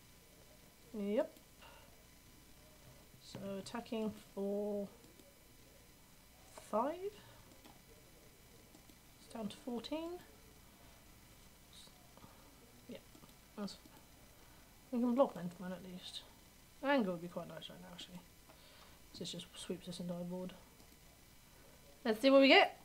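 A young woman talks calmly into a close microphone, in short bursts.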